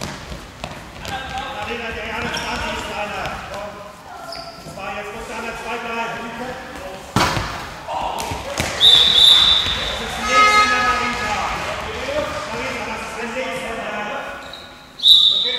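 Young girls call out to each other across the echoing hall.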